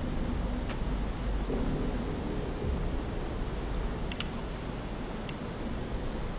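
Soft interface clicks sound as menu items are selected.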